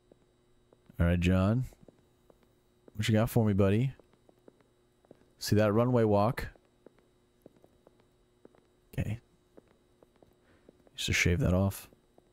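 A young man speaks with animation into a close microphone, in short bursts.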